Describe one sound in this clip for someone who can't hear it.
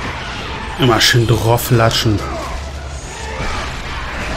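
Chained blades whoosh and slash through the air.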